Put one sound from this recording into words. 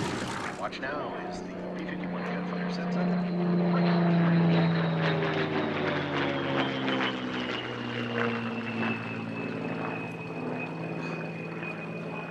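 A propeller plane's engine roars overhead, growing louder as it passes and then falling in pitch as it flies away.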